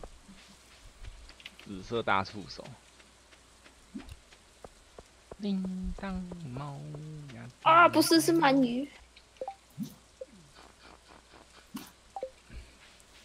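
Soft footsteps patter on a path and a wooden bridge.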